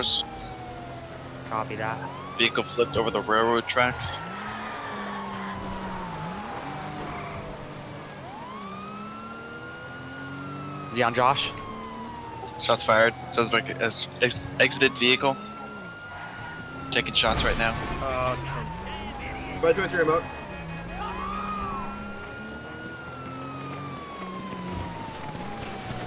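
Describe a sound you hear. A police siren wails steadily, rising and falling.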